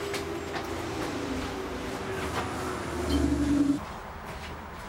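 A seat back creaks and thumps as it is folded.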